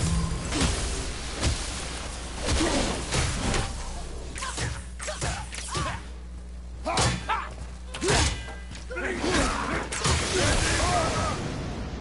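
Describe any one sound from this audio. Magic ice crackles and whooshes.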